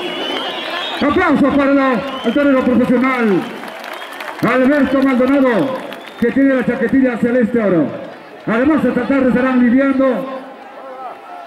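A large crowd shouts loudly together in bursts.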